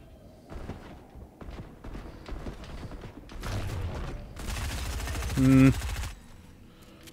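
Gunfire and building clatter sound from a video game.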